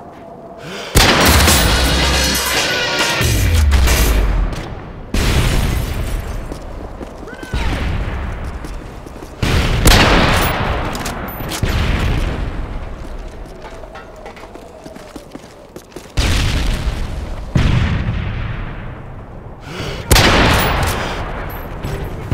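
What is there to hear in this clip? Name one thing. A rifle fires loud, booming shots that echo away, again and again.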